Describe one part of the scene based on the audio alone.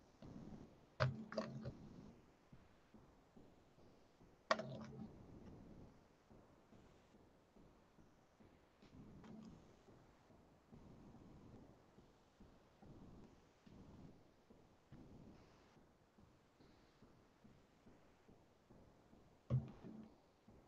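A lump of clay thumps down onto a table.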